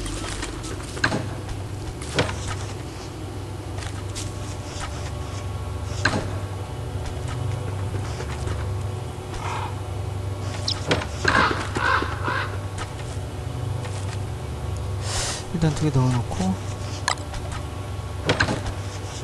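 Short clicks and pops sound as items are picked up.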